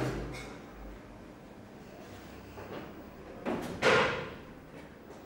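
A wooden paddle scrapes and swishes in a large pot.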